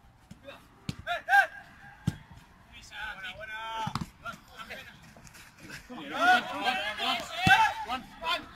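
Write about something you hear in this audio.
Young men shout to each other outdoors on a playing field.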